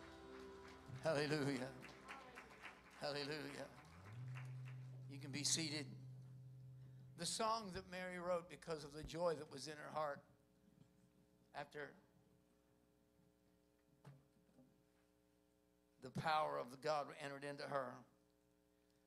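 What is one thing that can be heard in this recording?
An elderly man speaks with feeling into a microphone, heard over loudspeakers in a large room, with pauses between phrases.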